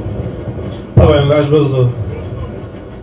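A man speaks briefly with animation through a microphone.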